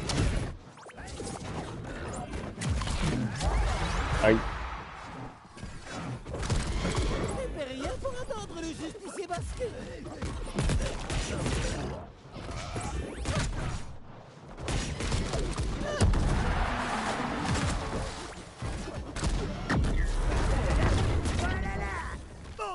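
Energy blasts zap and burst.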